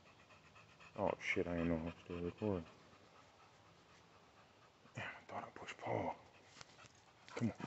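A dog whines and yelps loudly close by.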